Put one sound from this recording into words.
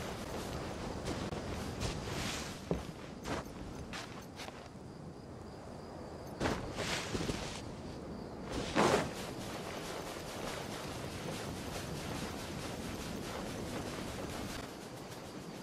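Footsteps patter quickly across grass and sand.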